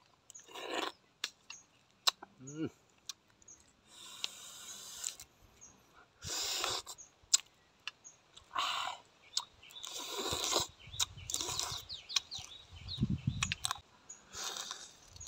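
A man slurps and chews food loudly, close by.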